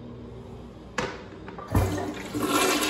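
A toilet seat lid clacks against the tank.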